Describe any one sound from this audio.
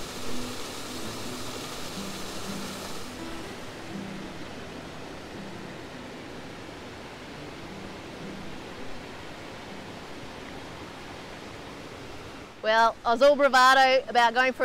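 A small waterfall splashes steadily nearby.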